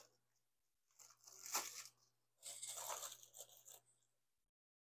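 Plastic bags crinkle and rustle close by.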